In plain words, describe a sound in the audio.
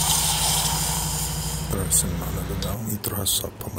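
A gas stove burner hisses steadily.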